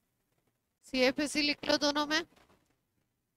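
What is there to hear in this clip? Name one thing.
A woman speaks briefly and clearly into a close microphone.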